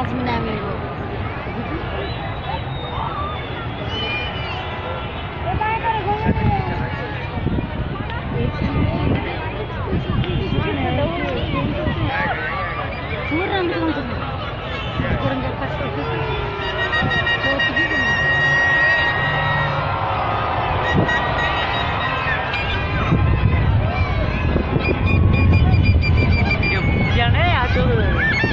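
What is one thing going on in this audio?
A large outdoor crowd cheers and shouts with excitement.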